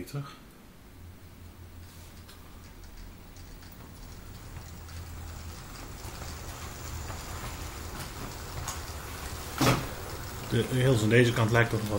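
A model train rumbles and hums along its track, growing louder as it comes closer.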